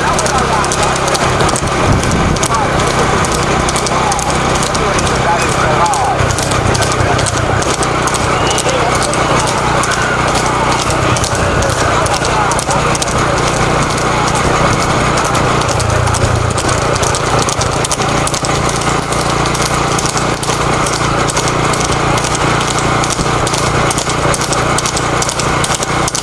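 Cart wheels rattle and roll along a road.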